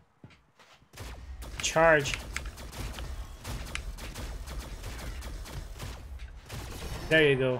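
A video game shotgun fires.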